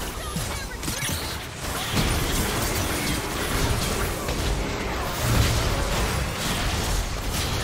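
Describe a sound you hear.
Game spell effects burst and crackle in quick succession.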